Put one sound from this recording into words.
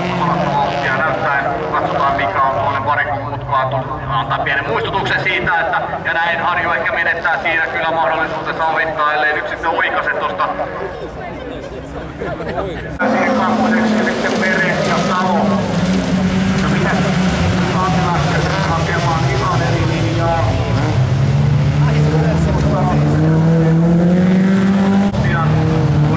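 Rally car engines roar and rev nearby.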